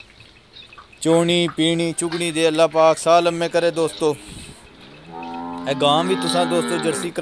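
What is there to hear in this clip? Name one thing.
A buffalo calf bleats loudly nearby.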